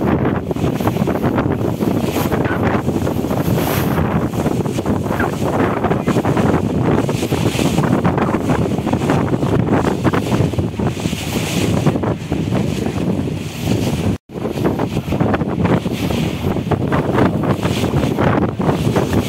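Water splashes against a moving boat.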